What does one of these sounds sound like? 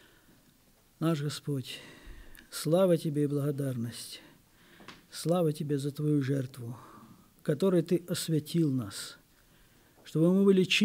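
A middle-aged man speaks slowly and earnestly into a microphone, in a room with some echo.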